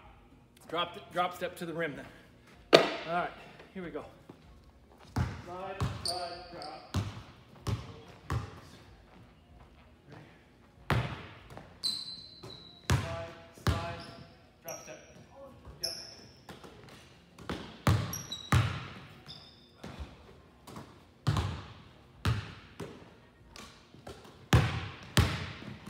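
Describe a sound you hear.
Basketballs bounce on a wooden court, echoing in a large hall.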